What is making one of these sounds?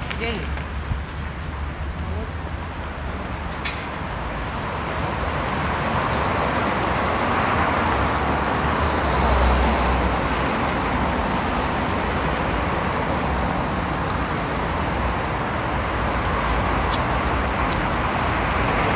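City traffic hums steadily along a street outdoors.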